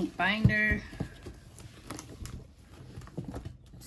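Plastic folder pages rustle and tap under handling.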